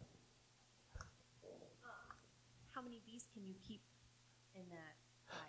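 A woman speaks quietly into a microphone.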